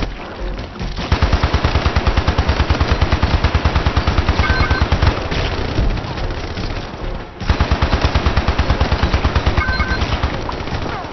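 A gun fires in rapid, loud bursts.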